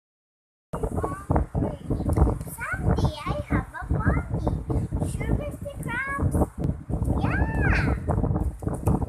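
A young girl talks playfully close by.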